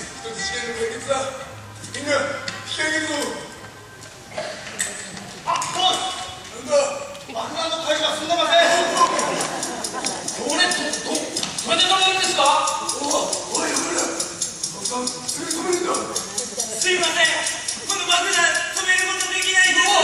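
Young men on a stage talk and shout with animation, heard through a hall.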